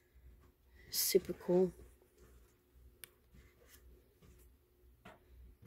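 Cards slide and tap against one another.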